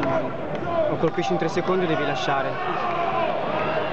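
A kick lands with a thud on a fighter's body.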